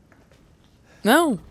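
A young woman exclaims loudly into a close microphone.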